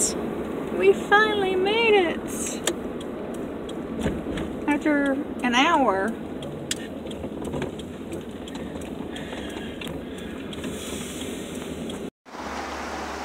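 A car engine hums as the car drives along a road.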